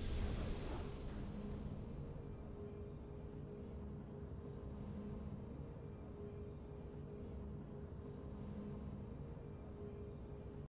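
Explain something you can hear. Triumphant game music plays steadily.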